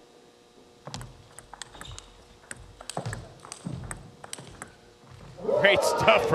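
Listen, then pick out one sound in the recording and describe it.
A table tennis ball clicks quickly back and forth between paddles and the table.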